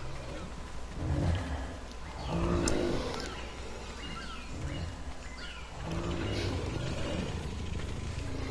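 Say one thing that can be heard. Large creatures grunt and growl deeply, now and then.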